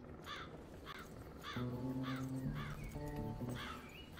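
Horses' hooves thud on a dirt path.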